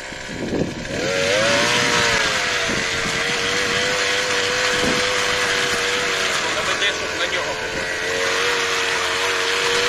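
A small motor cultivator whines loudly and steadily.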